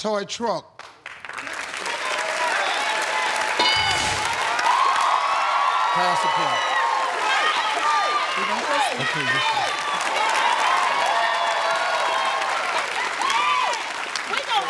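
A studio audience cheers and applauds loudly.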